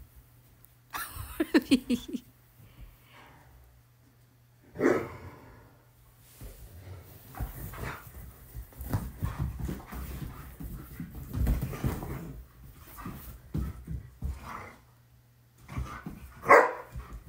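Dogs growl playfully as they wrestle.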